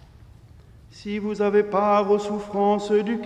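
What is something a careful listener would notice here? Men chant together in a large echoing hall.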